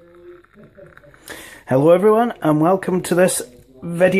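Water pours from a kettle into a mug.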